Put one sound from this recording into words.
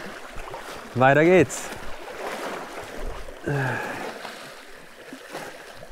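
Small waves lap against rocks outdoors in wind.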